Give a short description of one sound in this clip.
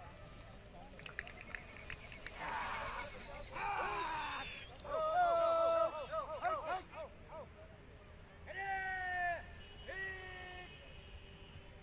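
Men shout loudly nearby, outdoors.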